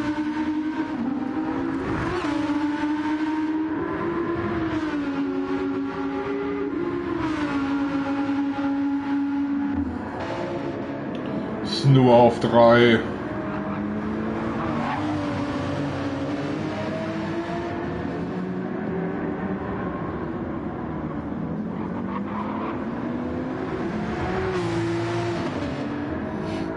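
A racing car engine roars loudly, its pitch rising and falling with gear shifts.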